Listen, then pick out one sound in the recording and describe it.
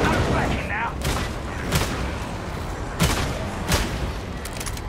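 Guns fire loud single shots.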